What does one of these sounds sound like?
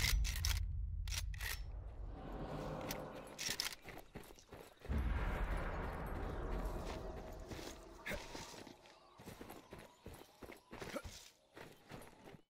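Footsteps run over grass and gravel.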